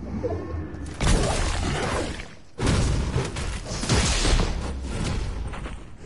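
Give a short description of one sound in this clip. Gunfire crackles in a video game.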